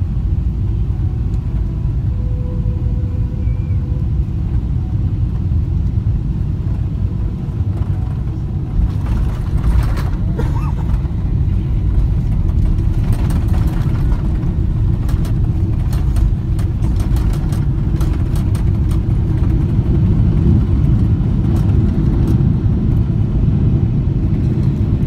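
Jet engines roar steadily and deeply from inside an airliner cabin.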